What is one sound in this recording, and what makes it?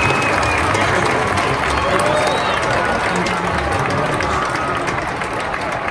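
A large crowd applauds in a large echoing arena.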